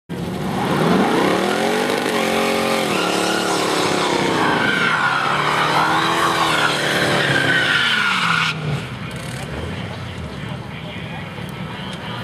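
Loud hot rod engines rev hard, rising and falling in pitch.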